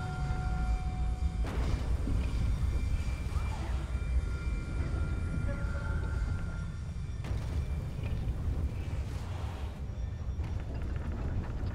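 Wind rumbles steadily over open ground.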